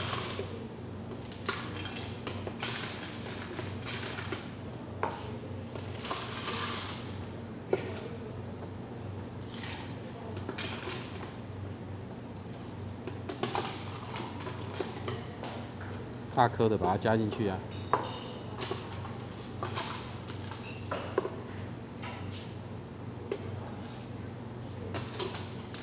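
Ice cubes clink and rattle in a plastic jug.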